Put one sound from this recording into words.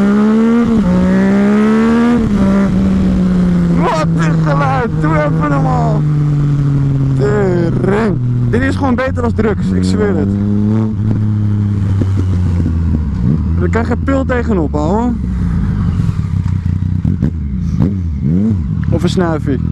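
A motorcycle engine hums steadily, rising in pitch and dropping again as it shifts gears.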